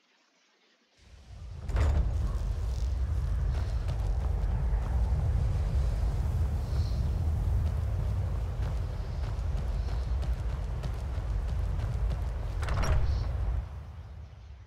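Wind blows steadily with a low roar.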